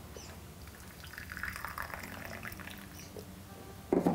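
Water pours from a kettle into a mug.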